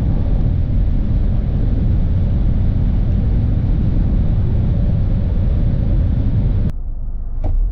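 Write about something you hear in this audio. Tyres and wind roar steadily as a car cruises at high speed.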